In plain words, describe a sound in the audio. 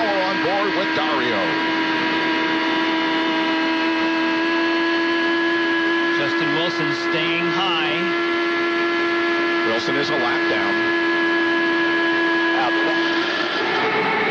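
A racing car engine screams at high, steady revs close by.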